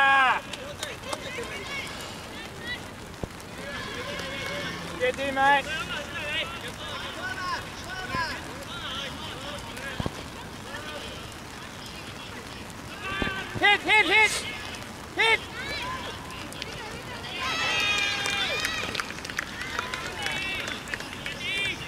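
Young women shout and call out to each other outdoors during a game.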